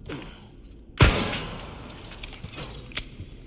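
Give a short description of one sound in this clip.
A gunshot cracks loudly and echoes.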